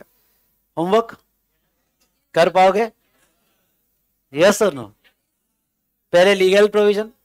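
A man speaks calmly into a close microphone in short phrases with pauses.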